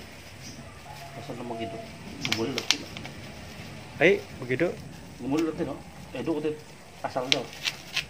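Plastic sheeting crinkles as it is handled.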